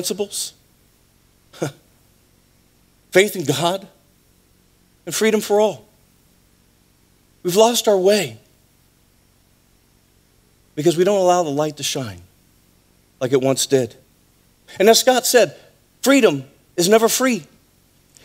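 A man speaks through a microphone with animation, in short bursts with pauses.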